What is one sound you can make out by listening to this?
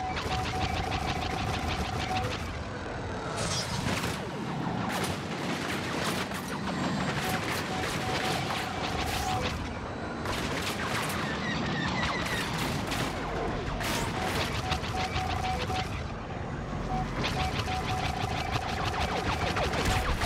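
A spaceship's engine roars in flight.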